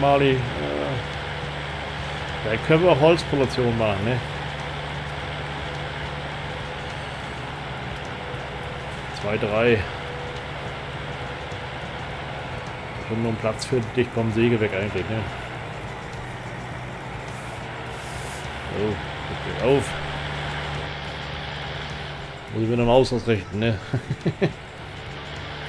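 A man talks with animation close to a microphone, in short bursts.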